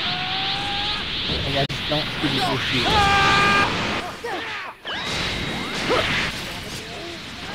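Energy blasts whoosh and crackle loudly.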